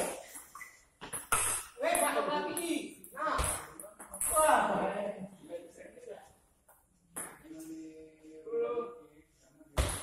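A ping-pong ball clicks sharply on paddles and the table.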